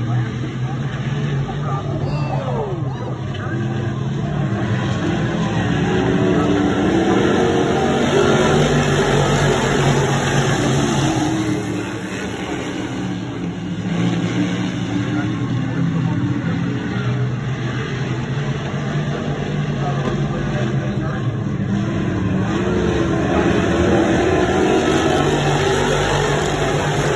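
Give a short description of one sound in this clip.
A pack of V8 modified race cars roars around a dirt oval at full throttle.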